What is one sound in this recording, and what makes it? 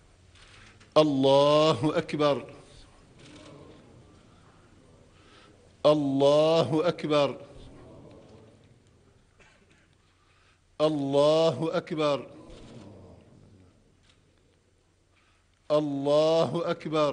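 An elderly man chants loudly through a microphone in a large echoing hall, in short bursts with pauses.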